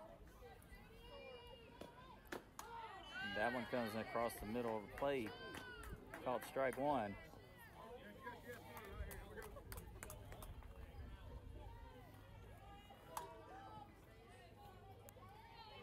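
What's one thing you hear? A softball pops into a catcher's mitt.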